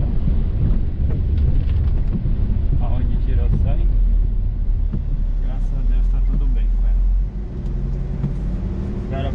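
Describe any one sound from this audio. Tyres rumble on the road.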